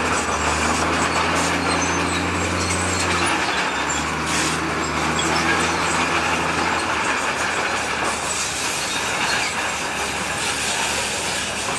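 Rocks and dirt slide and tumble out of a tipping truck bed.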